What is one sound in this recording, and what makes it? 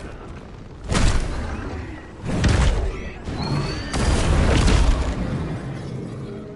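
A huge creature roars deeply.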